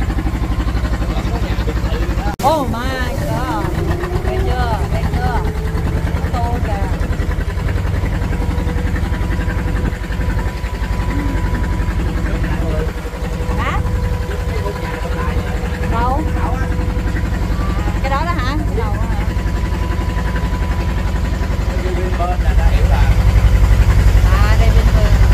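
A boat engine drones steadily with a low rumble.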